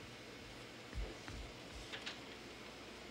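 A door handle clicks and rattles.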